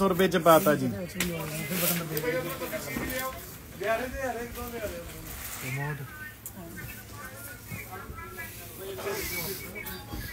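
Fabric rustles as it is unfolded and handled.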